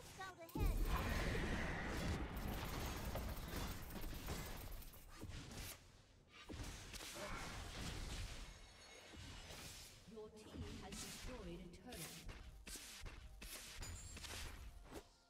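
Game spells and weapon hits crash and clash in a busy battle.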